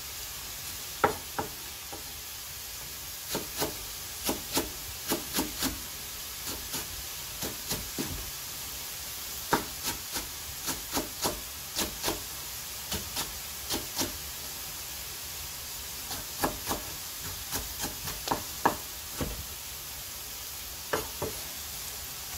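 A knife chops green onion on a wooden cutting board.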